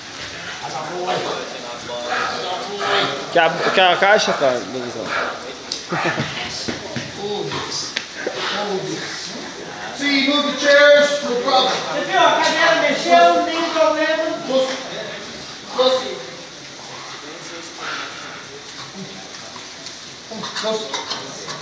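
A dog growls and barks fiercely.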